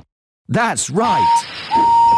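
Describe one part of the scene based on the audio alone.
A steam engine hisses out steam.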